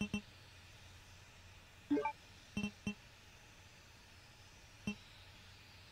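Short electronic menu blips sound several times.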